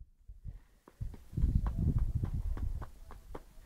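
Small footsteps patter on a dirt path.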